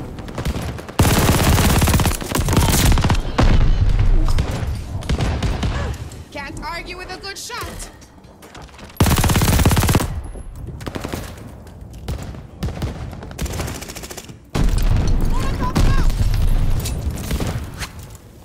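A machine gun fires loud rapid bursts at close range.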